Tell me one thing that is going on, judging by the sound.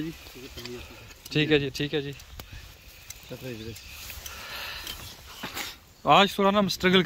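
A wood fire crackles close by.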